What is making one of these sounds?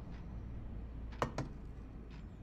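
A plate is set down on a table with a clink.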